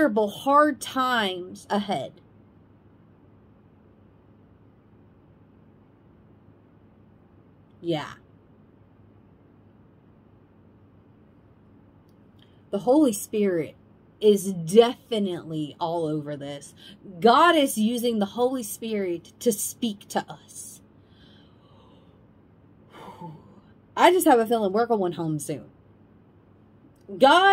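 A young woman talks with animation close to a microphone, pausing now and then.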